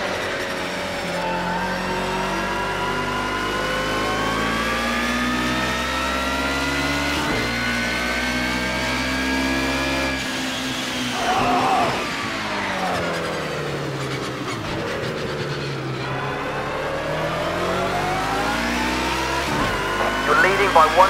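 A racing car engine roars, rising through the gears and dropping as it brakes into corners.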